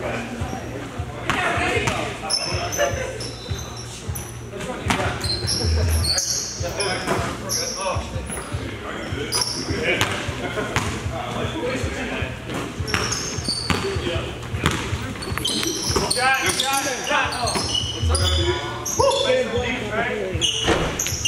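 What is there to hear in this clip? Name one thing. Young men call out and shout to each other during play.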